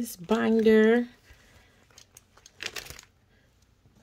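Plastic binder pages rustle and flap as they turn.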